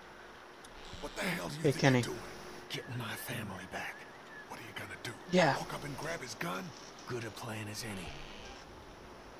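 A young man talks.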